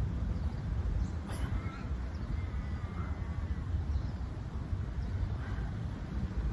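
Wind rumbles steadily against the microphone outdoors.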